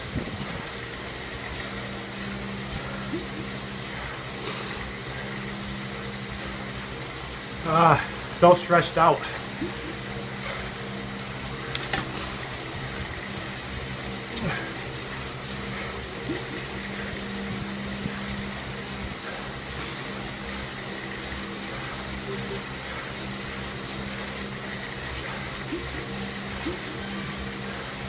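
A bike trainer hums steadily under pedalling.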